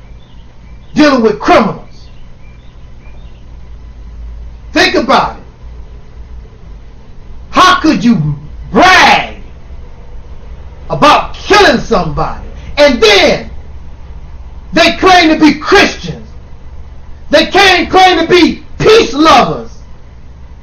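A man sings loudly and with passion in short bursts, close to a microphone.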